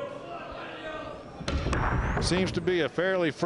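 A cue strikes a pool ball with a sharp crack.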